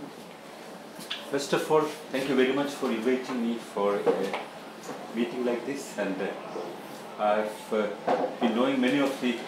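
A man speaks calmly, heard nearby in a room.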